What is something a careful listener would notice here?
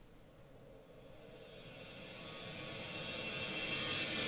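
A jet engine whine rises as an airliner approaches.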